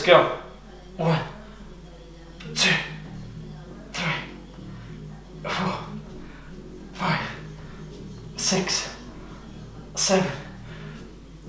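A man exhales sharply in a steady rhythm.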